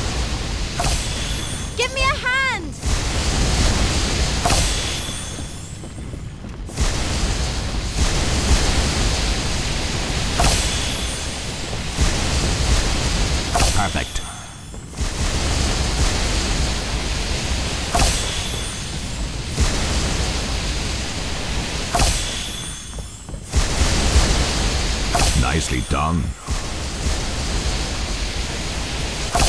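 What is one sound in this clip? Water sprays in rushing bursts.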